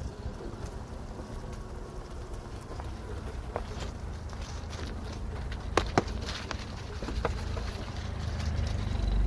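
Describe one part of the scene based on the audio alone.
Tyres crunch over dry leaves and dirt.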